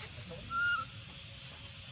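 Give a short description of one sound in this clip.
A baby monkey gives a short, high squeal close by.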